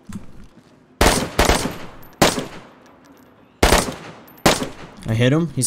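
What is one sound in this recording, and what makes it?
Rifle shots ring out one at a time, with a sharp echo after each.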